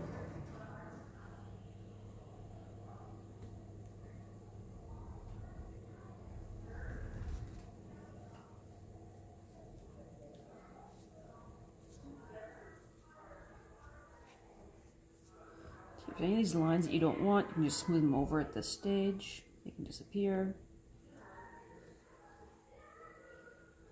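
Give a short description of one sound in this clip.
Fingers rub and press soft clay.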